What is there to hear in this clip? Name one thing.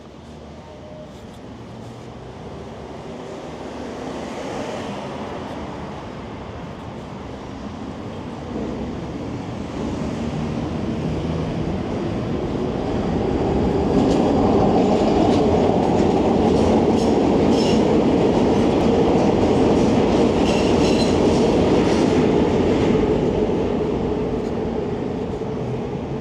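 Electric bike tyres roll over concrete pavement.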